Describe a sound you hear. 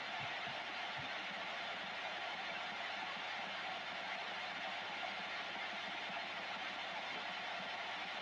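Radio static hisses steadily from a loudspeaker.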